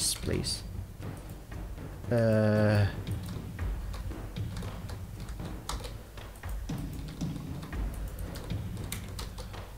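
Stone blocks are set down with dull knocks.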